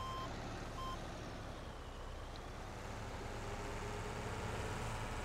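A diesel wheel loader engine rumbles steadily.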